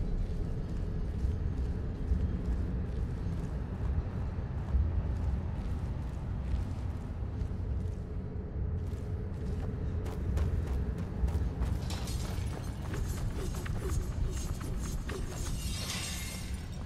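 Footsteps scuff steadily over stone and gravel.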